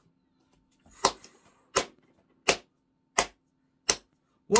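A young man claps his hands in a slow, even rhythm.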